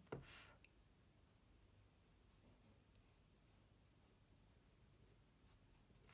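A blending stump rubs softly across paper.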